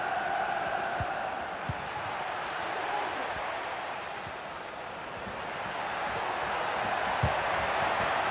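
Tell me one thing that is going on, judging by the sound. A football is kicked with dull thuds.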